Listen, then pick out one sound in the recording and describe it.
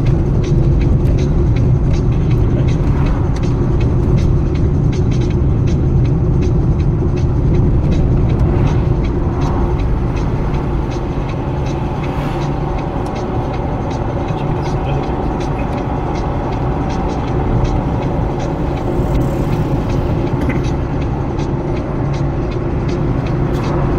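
Tyres hiss on wet asphalt.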